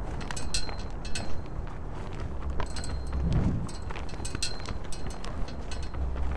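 Soft footsteps shuffle on hard ground.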